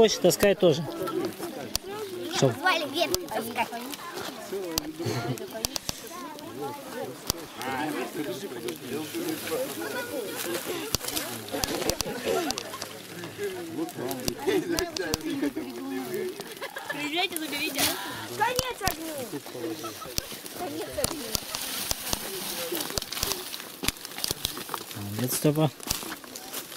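Women and children talk and call out nearby, outdoors.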